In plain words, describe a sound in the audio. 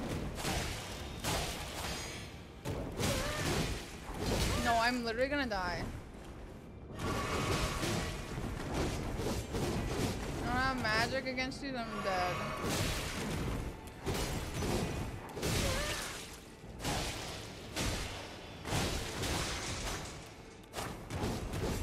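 A young woman speaks into a close microphone.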